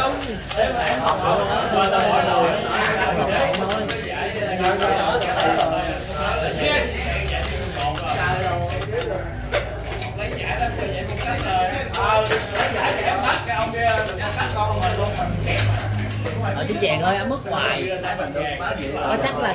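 Game pieces click together in a hand.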